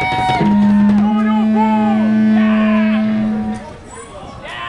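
An amplifier gives off a loud, steady hum.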